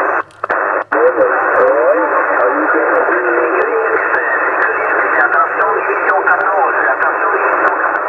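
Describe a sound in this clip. A man talks through a radio receiver, sounding thin and warbling.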